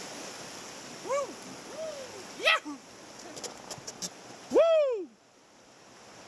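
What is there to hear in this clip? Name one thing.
Young men whoop and cheer excitedly.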